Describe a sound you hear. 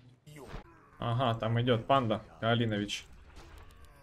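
A second man speaks loudly through a microphone.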